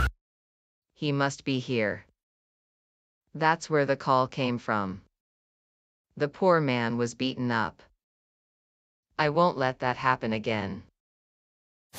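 A woman speaks calmly in short phrases, close to a microphone.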